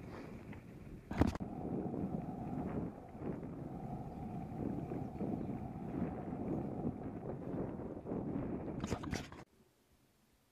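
Tyres rumble and bump along a grassy dirt trail.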